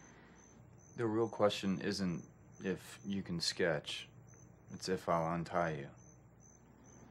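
A young man speaks softly, close by.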